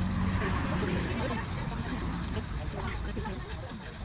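A metal spatula scrapes and stirs dry grains in a pan.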